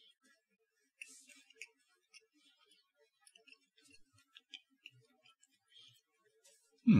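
A man chews food softly.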